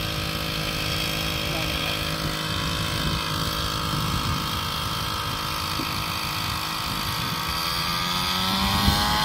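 A drone buzzes steadily as it hovers nearby, its whine rising in pitch near the end.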